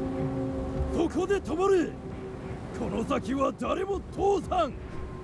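A man shouts angrily from a short distance.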